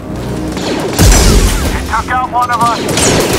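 A laser sword ignites with a loud whoosh and hums.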